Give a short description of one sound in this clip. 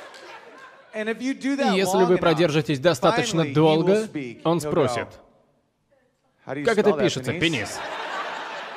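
A man talks with animation to an audience, heard through a microphone.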